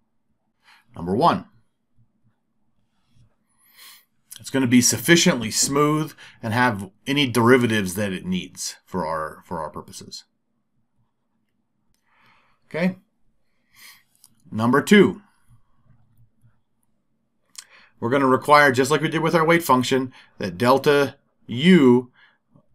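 A man lectures calmly into a close microphone.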